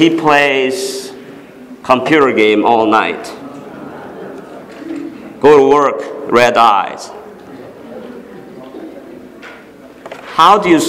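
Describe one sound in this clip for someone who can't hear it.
A man speaks calmly into a microphone in a reverberant hall, with pauses between phrases.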